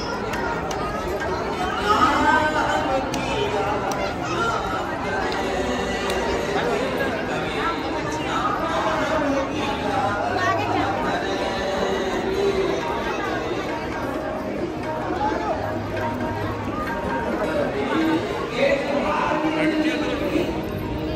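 A large crowd murmurs and chatters close by.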